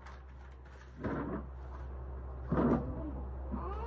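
A guitar body bumps and knocks as it is handled.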